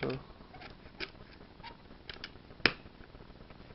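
A plug clicks into a power socket.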